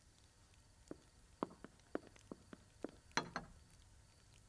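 China cups clink on saucers.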